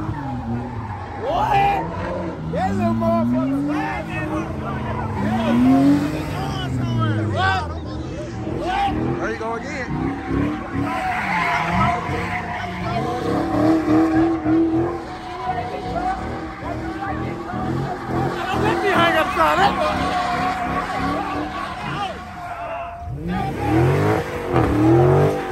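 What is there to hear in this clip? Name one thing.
A car engine revs hard and roars close by.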